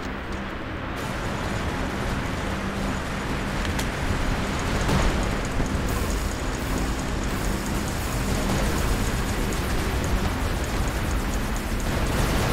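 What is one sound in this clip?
A large robot's jet thrusters roar steadily.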